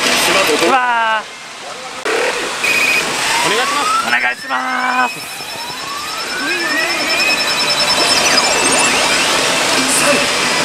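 A pachinko machine plays loud electronic sound effects and music.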